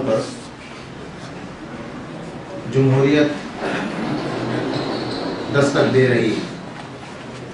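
A man speaks calmly into a microphone, heard close.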